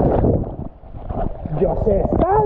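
A young man gasps and splutters at the water's surface.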